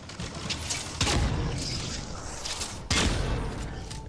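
A sniper rifle fires in a video game.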